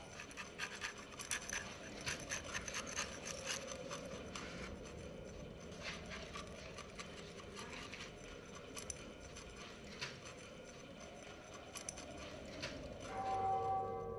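A metal blade scrapes and rasps against a plaster wall.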